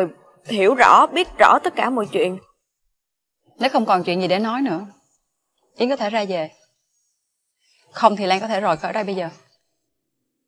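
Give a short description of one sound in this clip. A young woman speaks close by, upset and pleading.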